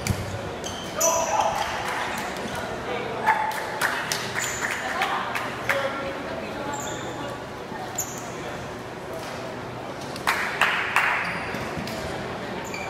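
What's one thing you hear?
Players shout and call out to each other in an echoing hall.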